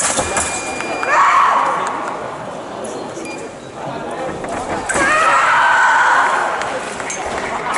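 A referee shouts out calls.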